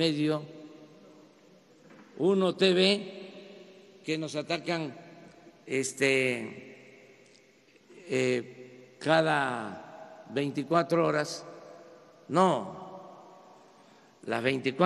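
An older man speaks forcefully into a microphone in bursts, with echoing pauses between phrases.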